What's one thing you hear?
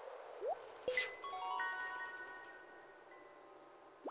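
A bright, cheerful chime jingle plays.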